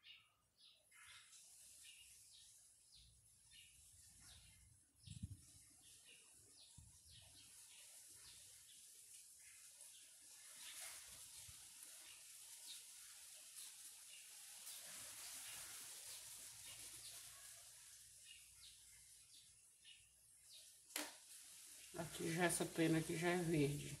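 A paintbrush brushes softly across wood.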